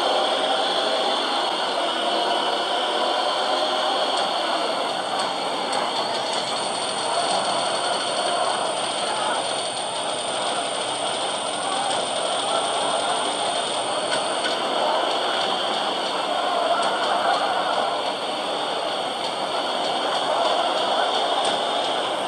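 Car engines roar steadily from a game's speaker.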